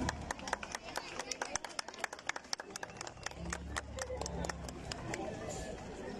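A marching band's drums beat a fast rhythm.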